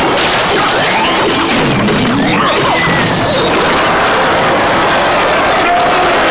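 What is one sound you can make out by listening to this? Cartoonish battle sound effects clash and crackle.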